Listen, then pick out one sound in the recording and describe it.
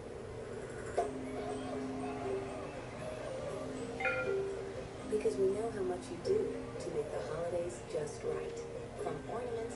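Gentle music plays from a television speaker.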